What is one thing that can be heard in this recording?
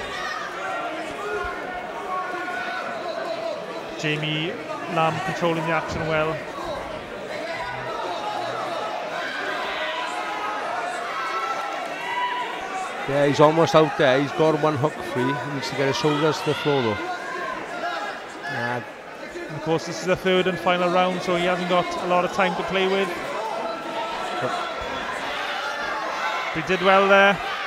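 A crowd cheers and chatters in a large hall.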